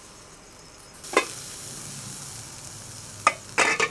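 A metal pot lid clanks as it is set back on.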